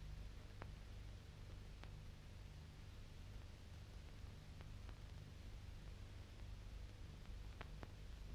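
Metal track links clank sharply now and then.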